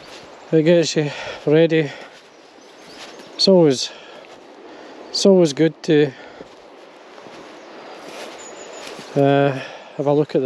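A river flows gently over stones nearby.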